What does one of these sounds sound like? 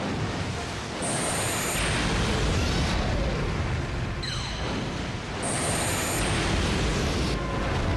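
A beam blasts with a roaring, crackling burst.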